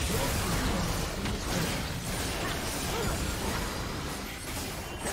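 Magic spells crackle and burst in a fast battle.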